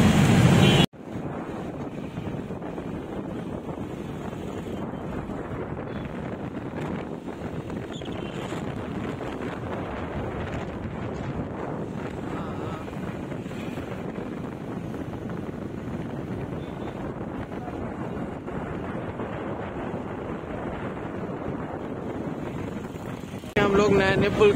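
Motorcycle and truck engines rumble steadily on a busy road.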